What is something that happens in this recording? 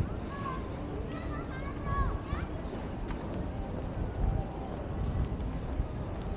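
Wind buffets and rumbles outdoors.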